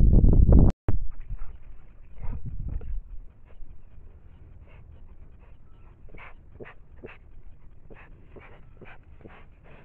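A bear sniffs and snuffles at close range.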